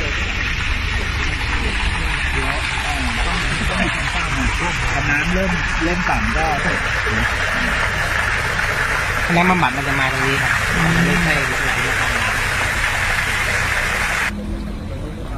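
Water trickles and splashes steadily through a drain nearby.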